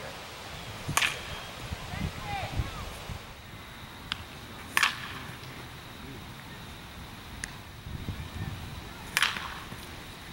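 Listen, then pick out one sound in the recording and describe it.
A metal bat cracks sharply against a baseball.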